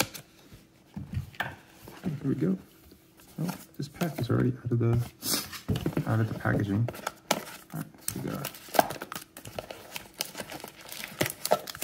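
A foil trading card pack crinkles as it is pulled from a box.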